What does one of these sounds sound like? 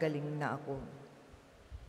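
A man chants in a sustained voice through a microphone, in a reverberant hall.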